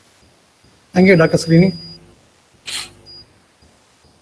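A man speaks briefly and loudly over an online call.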